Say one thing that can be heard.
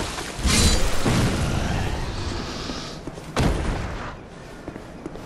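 A shimmering magical sound swells and fades.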